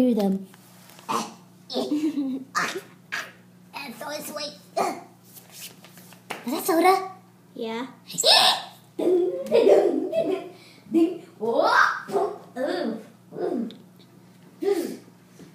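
A young girl talks animatedly close to the microphone.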